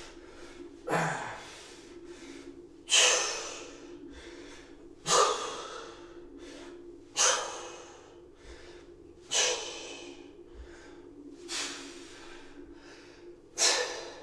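A man breathes out hard in short, regular bursts.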